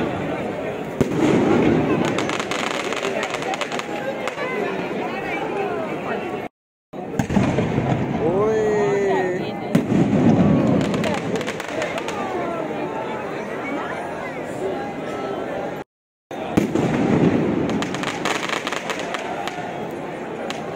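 Fireworks crackle and pop overhead.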